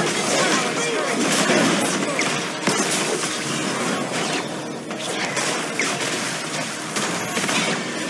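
Game spell effects whoosh and clash in quick bursts.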